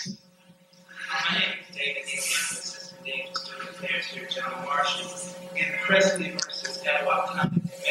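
A middle-aged man speaks calmly into a microphone in a room with some echo.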